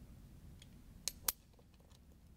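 A wrench clicks against a metal bolt.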